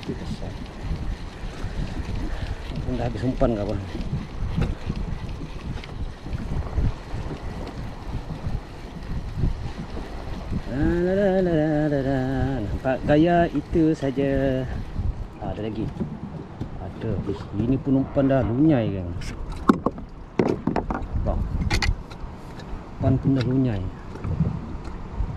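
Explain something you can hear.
Small waves lap against a kayak hull.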